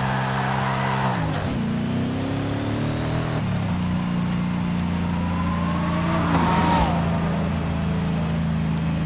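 A powerful car engine roars loudly, its pitch dropping and rising with gear shifts.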